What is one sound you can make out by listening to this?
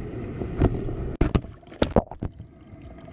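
Water splashes and bubbles around a plastic bottle trap as it goes under.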